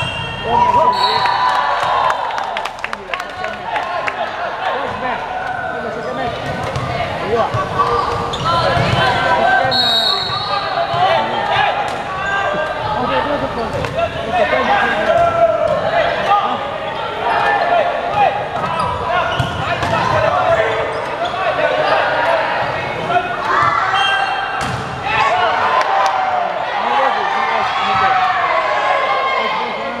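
Young men shout and call out to each other across an echoing hall.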